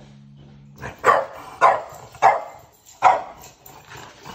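A dog barks loudly several times.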